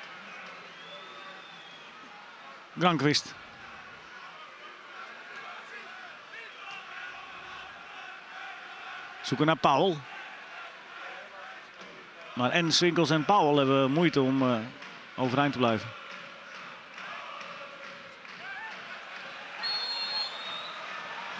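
A large crowd murmurs steadily in an open stadium.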